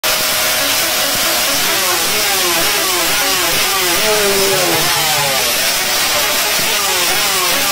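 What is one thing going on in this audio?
A motorcycle engine revs loudly and repeatedly, its pitch rising and falling.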